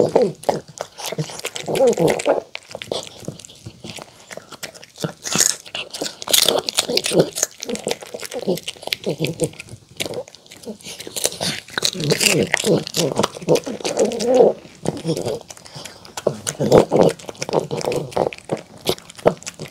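A dog chews and crunches food noisily, close by.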